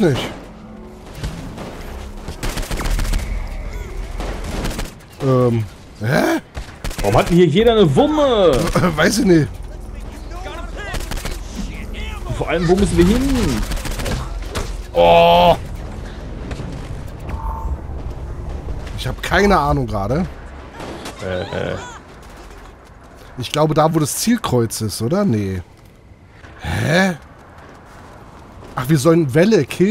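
Gunshots and blasts go off in bursts.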